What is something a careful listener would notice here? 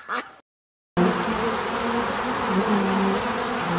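A bee buzzes steadily.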